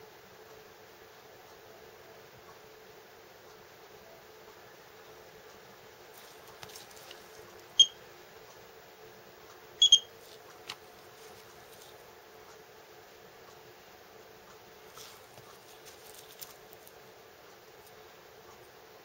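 A metal dental tool scrapes and taps softly against a plaster model.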